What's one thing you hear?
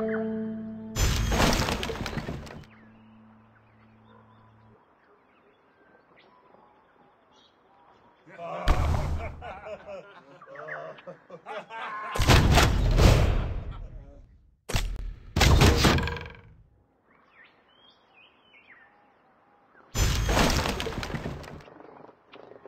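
A bright burst of game reward sound plays as resources are collected.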